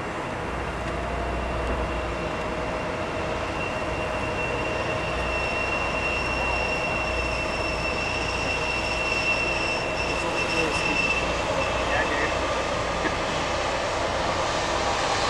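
Water churns and splashes around a large ship's hull.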